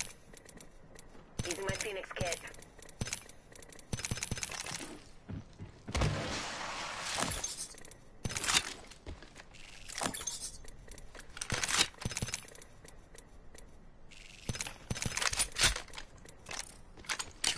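Items clatter and click as they are picked up.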